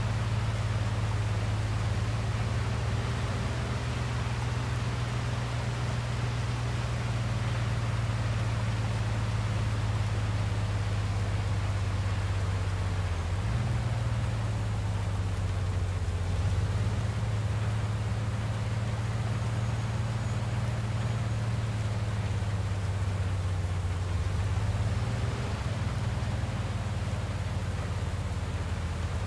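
A car engine hums steadily, shifting pitch as the car speeds up and slows.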